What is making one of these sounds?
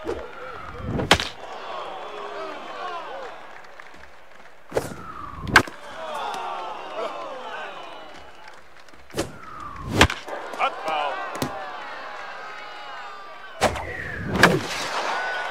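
A bat cracks against a ball several times.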